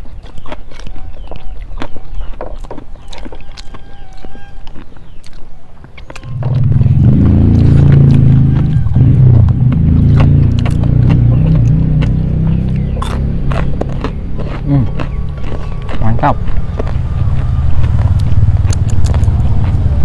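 Fingers scrape and tap food on plates while eating by hand.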